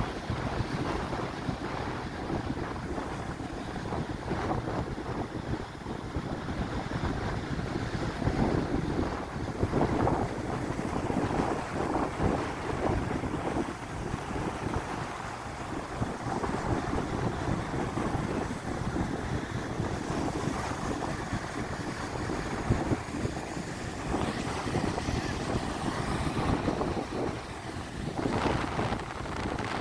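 Waves crash and break onto the shore.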